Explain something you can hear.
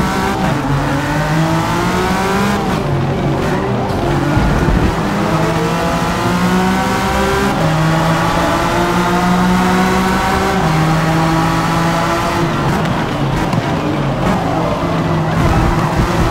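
A race car engine roars loudly, rising in pitch and dropping again with each gear change.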